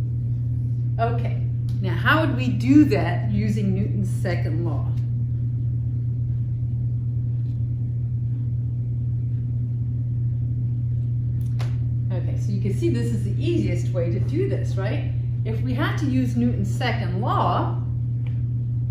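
A young woman speaks calmly, as if teaching.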